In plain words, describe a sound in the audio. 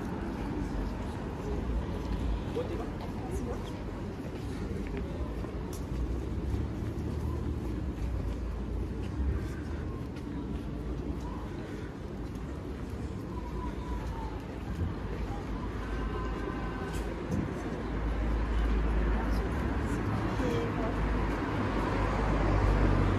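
Footsteps tap on a pavement close by.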